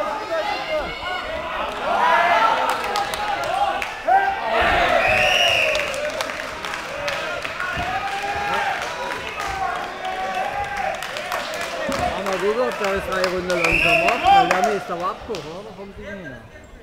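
A crowd of spectators shouts and cheers loudly in a large echoing hall.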